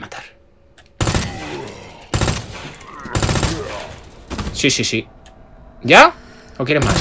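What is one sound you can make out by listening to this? A pistol fires several shots.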